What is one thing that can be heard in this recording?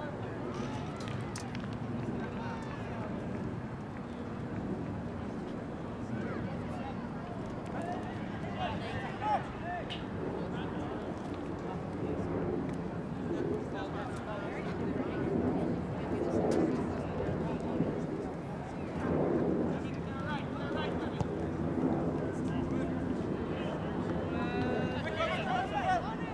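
Players shout to each other across an open field.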